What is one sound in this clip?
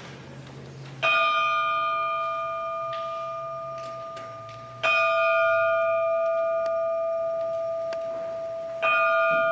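A large bell is struck and rings out, slowly fading, in an echoing hall.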